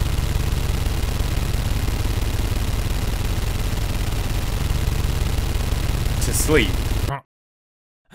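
An automatic gun fires in a rapid, unbroken burst, then stops abruptly.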